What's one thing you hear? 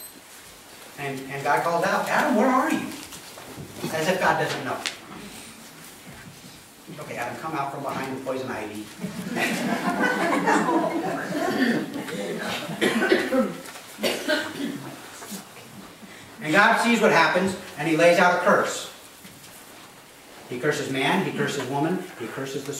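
A middle-aged man speaks calmly to an audience in a room with a slight echo.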